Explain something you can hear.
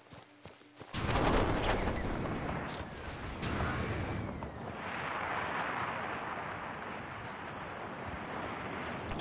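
Wind rushes loudly past during a fast glide through the air.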